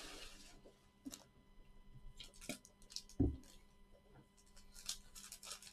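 A card pack is torn open with a sharp rustle.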